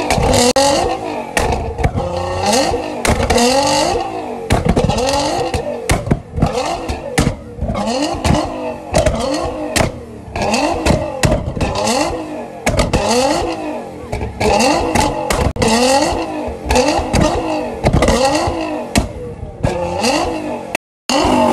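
A tuned twin-turbo V6 sports car revs hard again and again.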